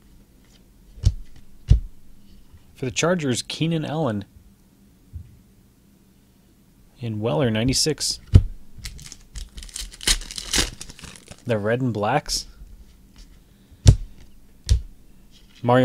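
Cards and plastic wrappers rustle and click as they are handled.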